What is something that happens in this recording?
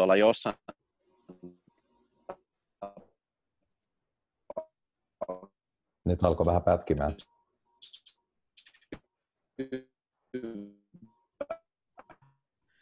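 A young man speaks over an online call, in short bursts with pauses.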